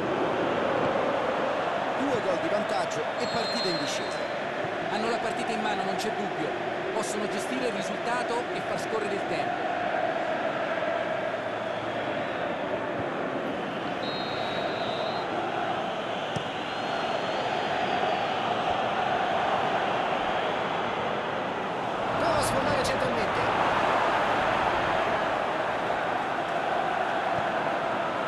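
A large stadium crowd roars and chants steadily, swelling louder near the end.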